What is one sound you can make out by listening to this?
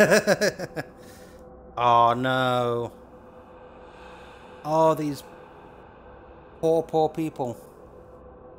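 A young man speaks with animation close to a microphone, in short bursts.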